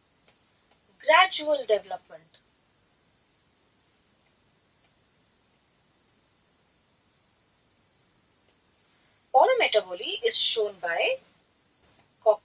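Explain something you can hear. A young woman speaks calmly into a microphone in short bursts.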